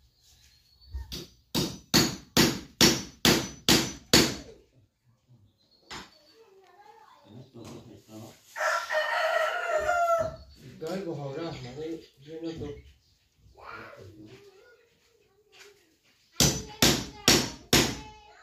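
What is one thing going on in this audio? A hammer knocks sharply on wood in quick repeated blows.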